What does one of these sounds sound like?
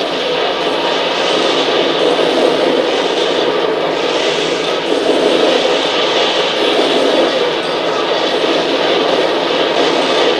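Explosions boom and crackle in a video game.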